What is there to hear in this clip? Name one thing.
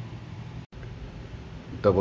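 A finger taps a plastic button with a soft click.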